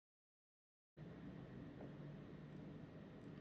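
A young woman gulps a drink close to a microphone.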